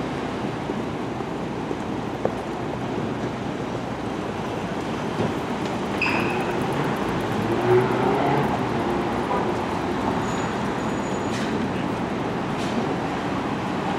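Footsteps of several people walk along a pavement.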